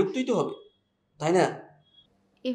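A man speaks in a strained voice into a phone, close by.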